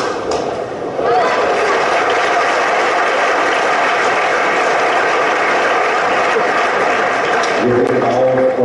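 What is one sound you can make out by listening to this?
A crowd applauds steadily in a large hall.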